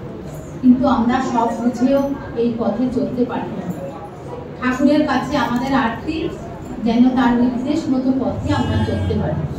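A middle-aged woman sings close to a microphone.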